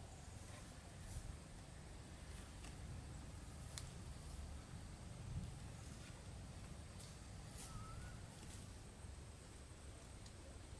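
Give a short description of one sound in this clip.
Leaves rustle and twigs snap as fruit is picked from branches.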